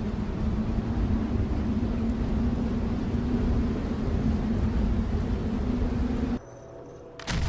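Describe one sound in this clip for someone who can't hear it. Heavy rain falls steadily.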